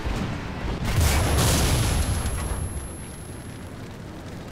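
A burning tank crackles and explodes.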